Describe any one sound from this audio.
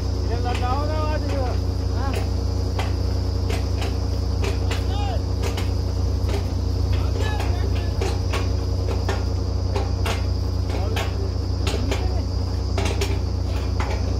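A drilling rig engine drones loudly and steadily outdoors.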